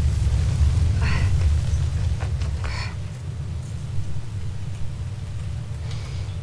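A young woman speaks briefly and quietly into a close microphone.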